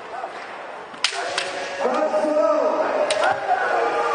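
Bamboo swords clack sharply together in a large echoing hall.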